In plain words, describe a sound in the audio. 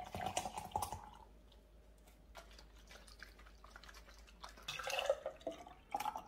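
Liquid pours into a glass.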